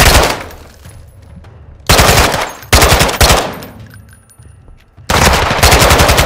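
A rifle fires rapid bursts of loud shots indoors.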